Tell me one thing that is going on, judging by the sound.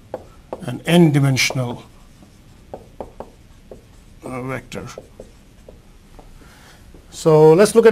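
A man speaks calmly nearby, as if lecturing.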